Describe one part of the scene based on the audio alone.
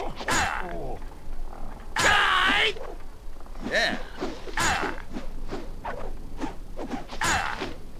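Metal weapons clash and ring in a fight.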